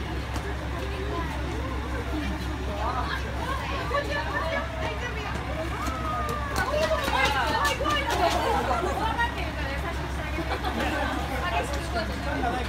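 A crowd of adults and young children chatter nearby, outdoors.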